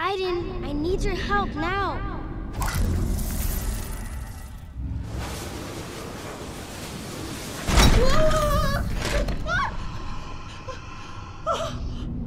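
An office chair's casters roll across a hard floor.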